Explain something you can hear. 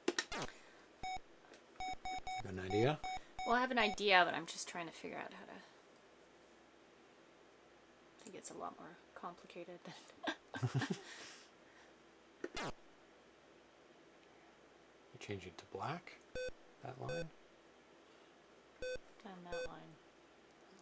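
Short electronic game beeps sound in bursts.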